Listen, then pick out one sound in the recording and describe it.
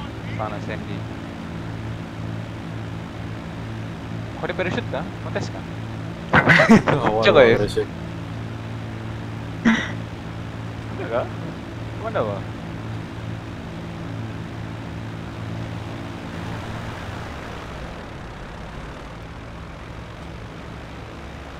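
A large propeller plane's engines drone steadily.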